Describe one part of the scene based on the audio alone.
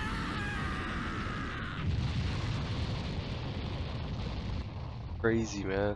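A huge explosion roars and rumbles.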